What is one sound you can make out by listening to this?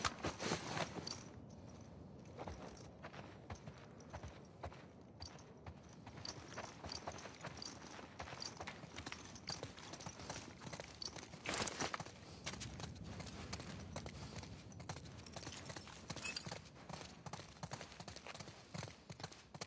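Footsteps tread softly across a hard floor indoors.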